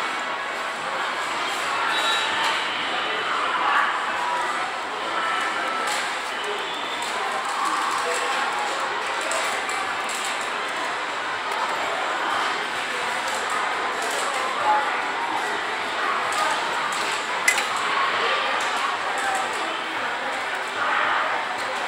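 A child presses buttons on a claw machine with soft clicks.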